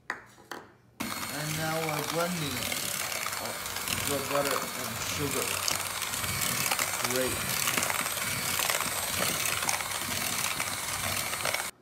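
An electric hand mixer whirs loudly as it beats batter.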